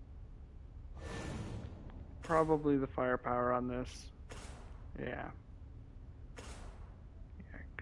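A game menu makes short whooshing blips as options are selected.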